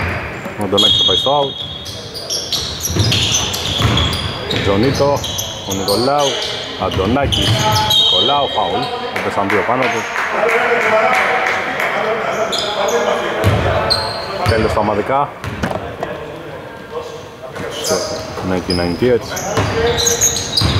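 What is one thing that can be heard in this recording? Sneakers squeak sharply on a wooden court.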